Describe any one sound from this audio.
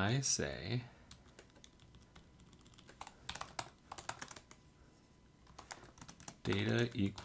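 Keyboard keys click quickly as someone types.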